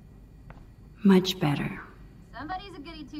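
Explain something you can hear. A young girl speaks up sharply and teasingly, close by.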